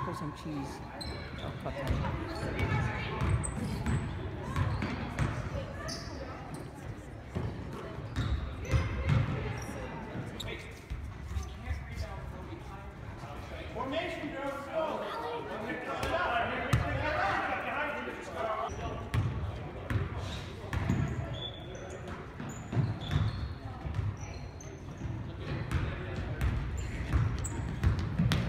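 Voices of girls and spectators echo through a large gym hall.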